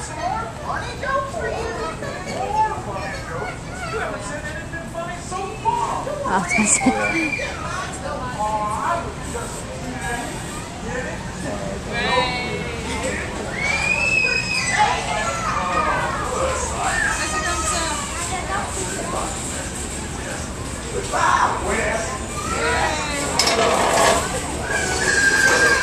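Several people talk at once in a busy room.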